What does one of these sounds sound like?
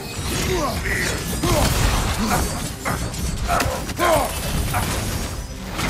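Magic blasts burst with crackling bangs.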